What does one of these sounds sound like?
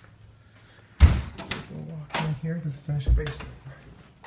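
A door opens with a thud and a rattle of its handle.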